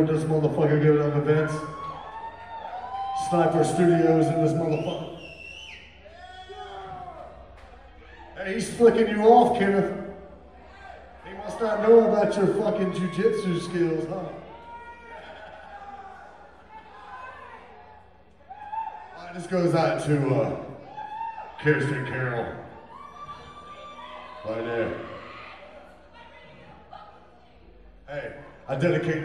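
A man talks animatedly into a microphone over loudspeakers.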